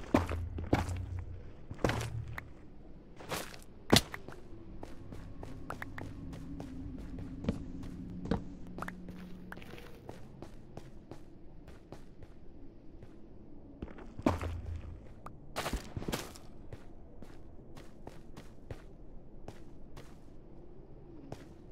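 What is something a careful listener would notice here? Footsteps crunch softly and steadily on loose ground.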